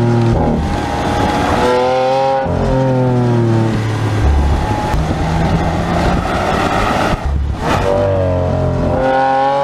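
A powerful car engine roars loudly, revving up and dropping in pitch as gears shift.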